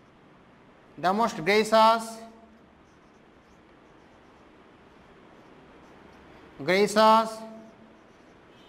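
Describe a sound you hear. A man speaks slowly in short, drawn-out phrases, close by.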